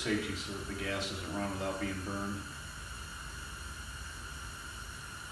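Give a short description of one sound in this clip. A tank-top propane heater burner hisses as it burns.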